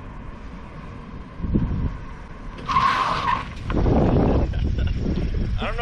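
A car engine approaches and slows to a stop nearby.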